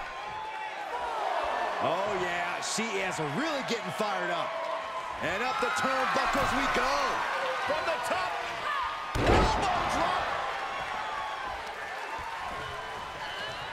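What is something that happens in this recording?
A large crowd cheers and roars throughout.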